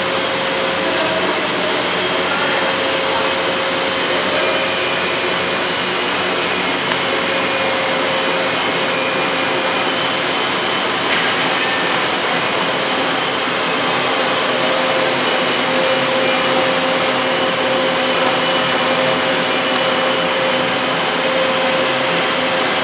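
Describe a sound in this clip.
A machine spins a metal part at high speed with a steady whir.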